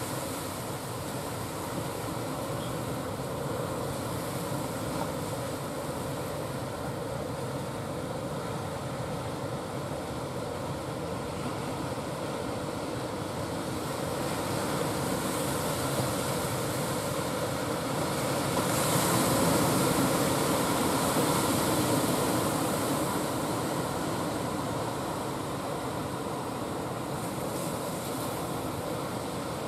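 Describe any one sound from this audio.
A boat engine chugs steadily and grows louder as the boat nears.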